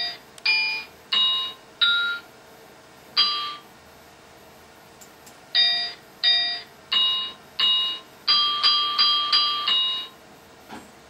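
A game plays short, bright chiming tones, one after another.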